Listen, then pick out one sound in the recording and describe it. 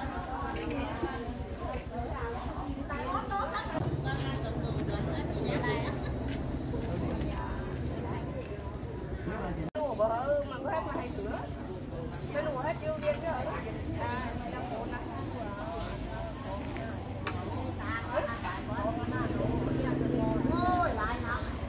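Women chat casually at close range, outdoors.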